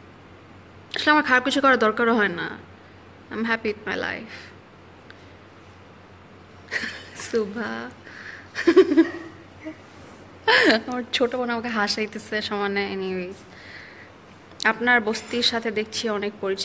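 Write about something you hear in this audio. A young woman talks casually close to the microphone, with pauses.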